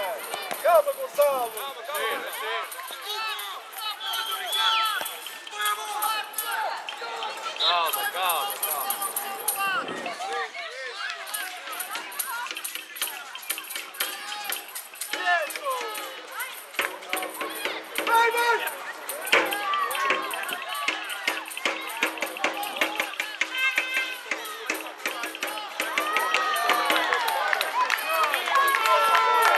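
Young boys shout and call out across an outdoor pitch.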